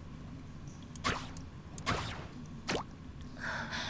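A light whooshing effect sounds as a small figure leaps upward.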